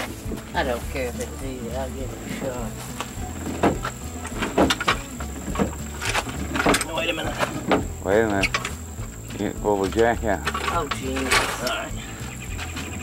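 A man talks close by, outdoors.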